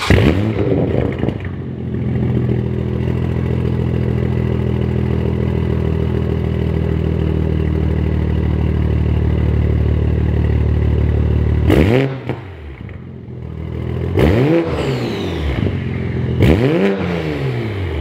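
A sports car engine revs sharply up and back down several times.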